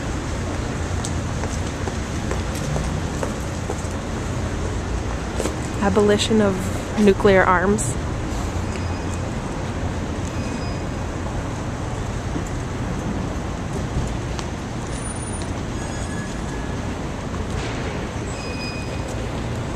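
Traffic rumbles steadily in the distance outdoors.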